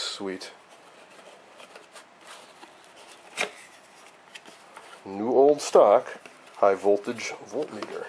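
Cardboard flaps rustle and scrape as a box is opened by hand.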